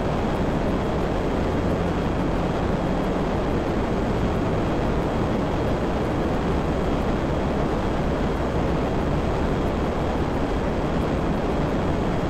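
A jet engine roars steadily as a jet flies low and fast.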